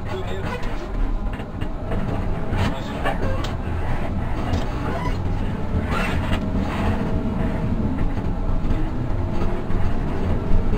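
The bus rattles and creaks as it drives over the road.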